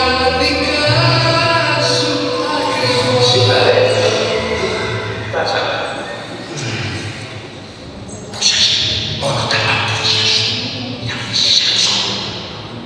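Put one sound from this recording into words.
Music plays loudly through loudspeakers in a large, echoing hall.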